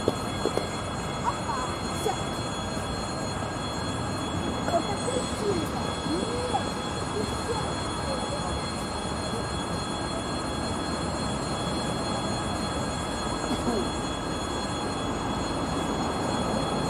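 A train rumbles slowly toward the listener along the tracks.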